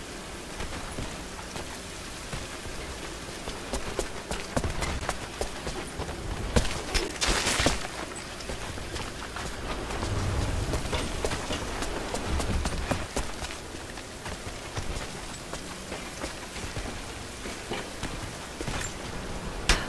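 A heavy wooden cart creaks and rumbles as it is pushed along a rail.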